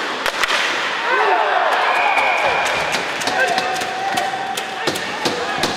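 A crowd cheers in a large echoing arena.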